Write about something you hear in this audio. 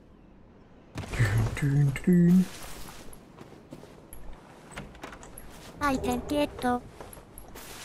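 A young woman talks with animation through a microphone.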